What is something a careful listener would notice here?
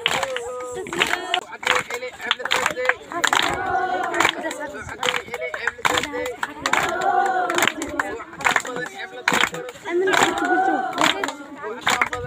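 People clap and stamp in a steady rhythm.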